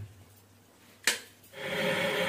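A switch clicks.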